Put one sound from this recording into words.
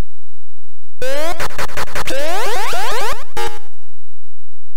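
A harsh electronic zap buzzes for about two seconds.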